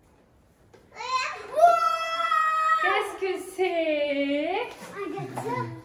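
A young woman speaks cheerfully and excitedly close by.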